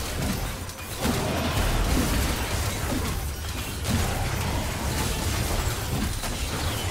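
Fantasy battle sound effects clash and thump over a low rumble.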